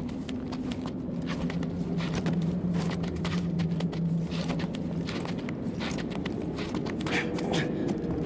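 Hands grip and scrape on rock while climbing.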